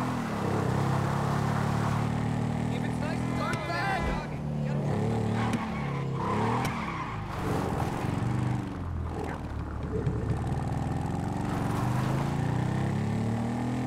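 A motorcycle engine revs and rumbles up close.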